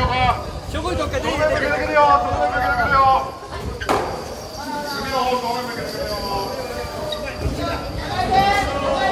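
A crowd of men chant loudly in rhythm outdoors.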